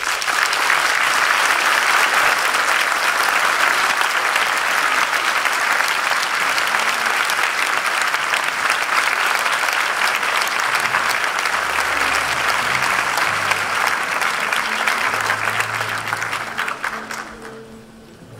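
An audience applauds loudly in a large echoing hall, then the clapping fades away.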